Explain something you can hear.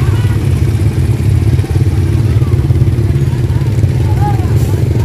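A motorbike engine idles nearby with a steady low rumble.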